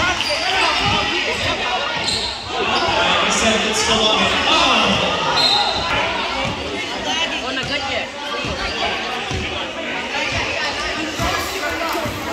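A crowd chatters and cheers loudly in an echoing gym.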